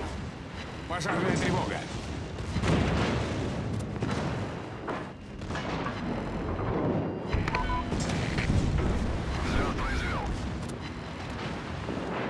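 Heavy naval guns fire with deep, booming blasts.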